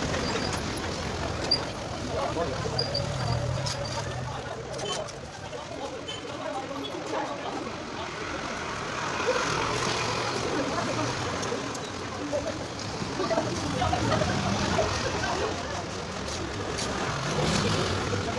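A trowel scrapes wet mortar on a concrete ledge.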